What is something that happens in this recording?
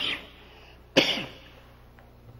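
A man coughs.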